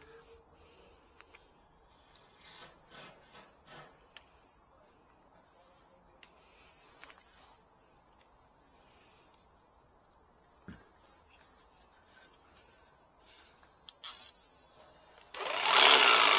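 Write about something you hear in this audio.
Plastic parts click and snap as a power tool is adjusted by hand.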